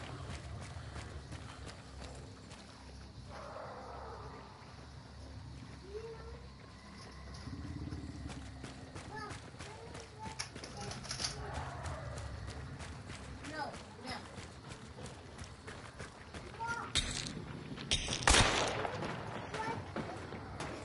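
Footsteps tread steadily on dirt and wooden boards.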